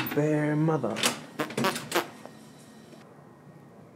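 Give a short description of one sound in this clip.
A door latch clicks and a door swings open.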